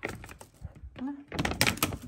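Dry pellets rattle into a plastic bucket.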